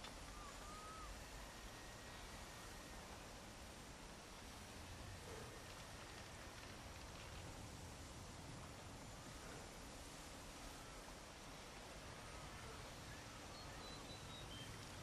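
Wind blows steadily through trees outdoors.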